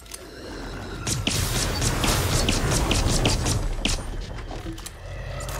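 Gunshots fire in rapid succession.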